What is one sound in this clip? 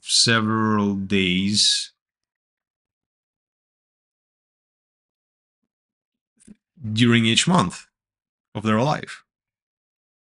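A man speaks calmly and close to a microphone, with pauses between phrases.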